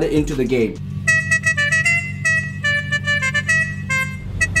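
A car horn plays a cheerful tune in quick honking notes.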